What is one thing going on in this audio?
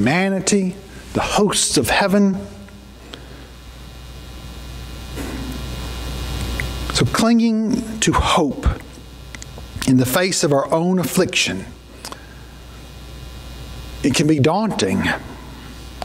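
A middle-aged man speaks with emphasis into a microphone, with long pauses, in a room with some echo.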